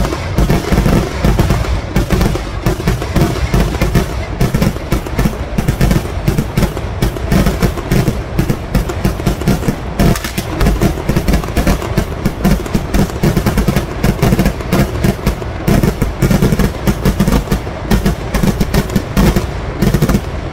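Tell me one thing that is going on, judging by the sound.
Rockets launch with a whoosh from the ground.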